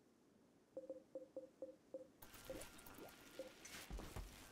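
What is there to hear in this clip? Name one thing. Short game interface blips sound in quick succession.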